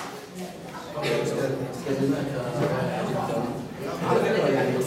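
A young woman speaks to a small audience in a room.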